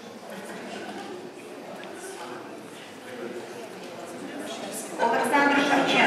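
Several adult men and women chat quietly nearby.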